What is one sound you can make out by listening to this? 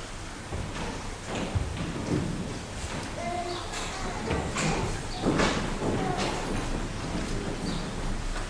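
Footsteps knock on a hard floor in an echoing room.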